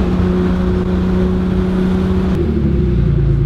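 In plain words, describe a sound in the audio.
A car engine hums steadily with road noise inside the car.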